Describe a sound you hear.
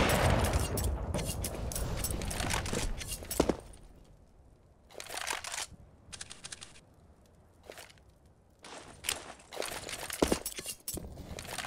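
Quick footsteps patter on hard ground.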